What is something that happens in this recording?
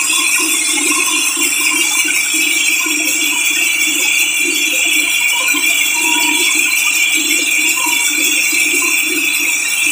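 A sawmill band saw cuts through a large hardwood log with a steady, high whine.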